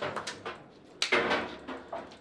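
Two men high-five with a loud slap.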